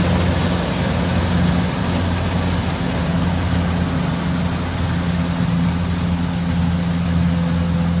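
A combine harvester's engine drones steadily nearby.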